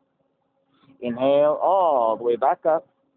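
A man speaks briefly and expressively, close by.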